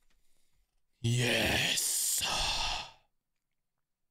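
A young man shouts loudly into a close microphone.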